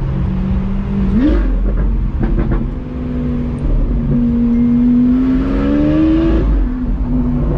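A car engine roars as it revs up and changes gear.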